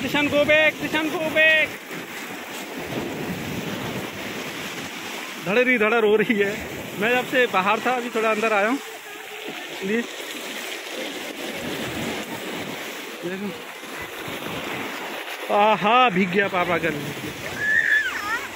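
Waves wash and fizz over a pebble shore.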